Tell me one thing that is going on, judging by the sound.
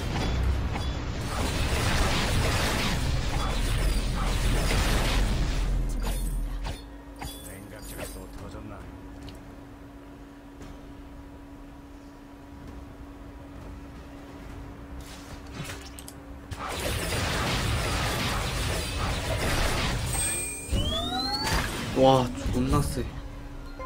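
Magic blasts and clashing effects burst and crackle in a fast fight.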